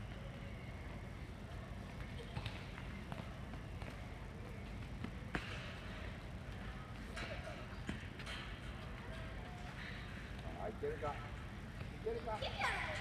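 A soccer ball is tapped repeatedly by a child's feet.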